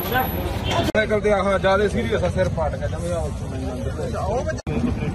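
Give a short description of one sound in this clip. A man speaks firmly outdoors, close by.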